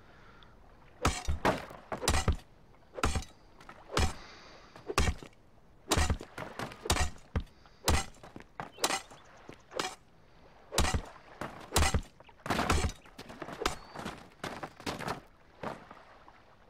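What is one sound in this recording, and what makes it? A pickaxe strikes rock with sharp, repeated blows.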